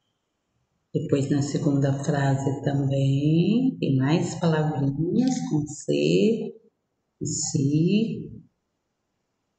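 A woman speaks calmly and clearly through a microphone on an online call.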